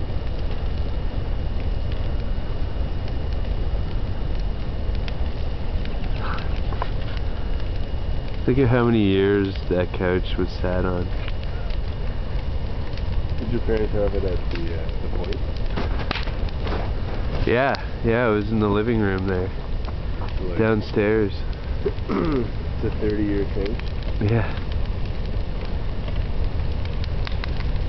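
Burning wood crackles and pops.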